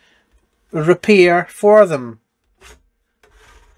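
A metal instrument chassis slides out of its casing with a soft scrape.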